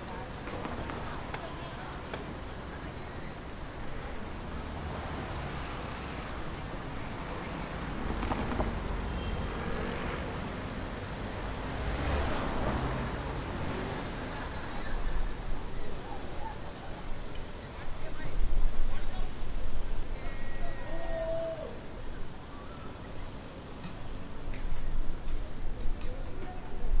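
Cars drive past on a busy street.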